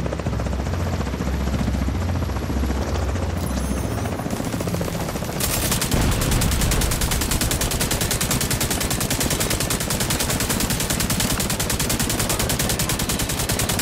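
A helicopter's rotor thumps and roars overhead.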